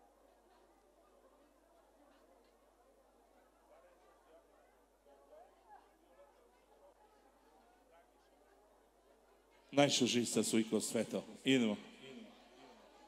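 A crowd of people chatters in a large room.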